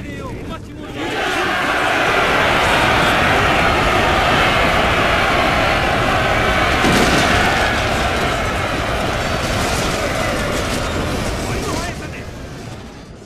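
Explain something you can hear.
A large crowd of soldiers roars and shouts loudly.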